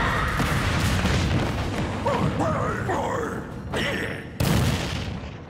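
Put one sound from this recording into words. Video game blows land with sharp hits.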